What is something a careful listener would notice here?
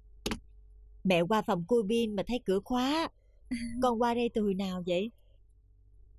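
A young woman speaks in reply to others.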